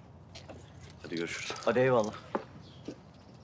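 A young man speaks briefly and calmly nearby.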